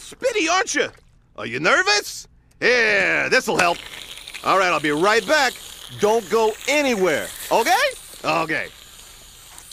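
A man speaks in a cartoonish, wavering voice.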